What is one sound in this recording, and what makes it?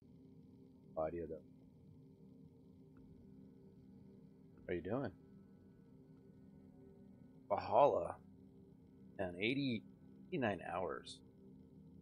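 A middle-aged man speaks calmly in short phrases into a close microphone.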